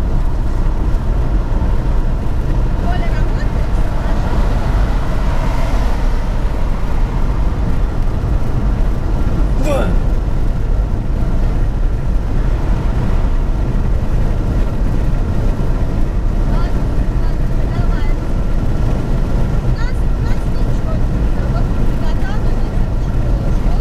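Tyres roar steadily on a highway as a car drives along.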